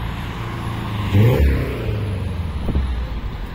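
A car passes close by.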